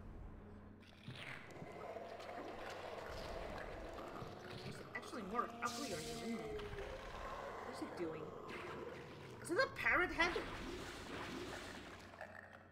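A monster growls and roars loudly.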